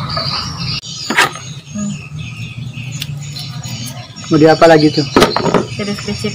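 A peeler scrapes the skin off a mango.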